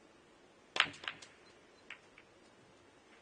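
Snooker balls knock together with sharp clicks.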